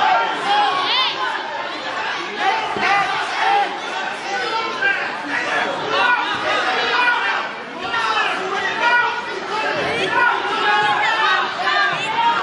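Wrestlers thump and scuffle on a mat.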